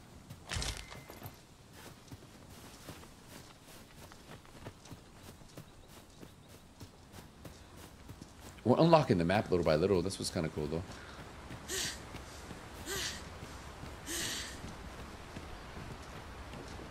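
Footsteps crunch softly through grass.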